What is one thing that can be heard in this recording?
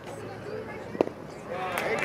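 A baseball pops sharply into a catcher's mitt.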